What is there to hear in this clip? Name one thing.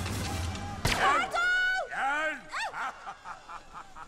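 A man shouts with effort at close range.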